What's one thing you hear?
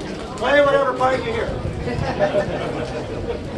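A man speaks loudly and with animation to a crowd outdoors.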